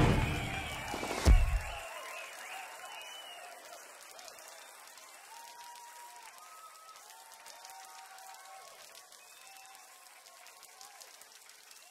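A crowd cheers and whistles, then fades down.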